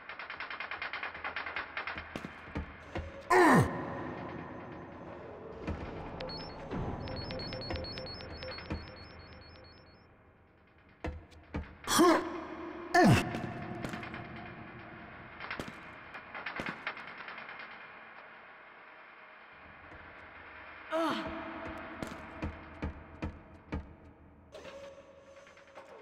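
Footsteps thud quickly and steadily.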